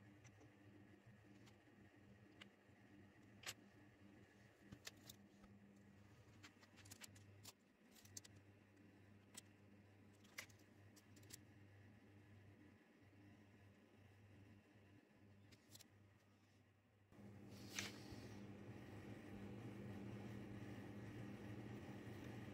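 A small screw scrapes lightly as a hand tool turns it.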